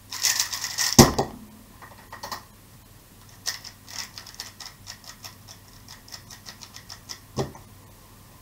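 A cube is set down on a desk with a thud.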